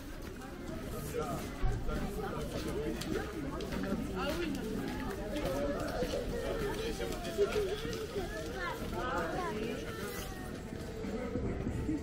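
People chatter nearby on a busy street outdoors.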